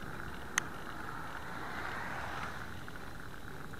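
A car approaches and rushes past close by.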